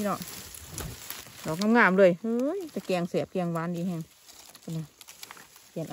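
Dry leaves rustle as hands brush through them.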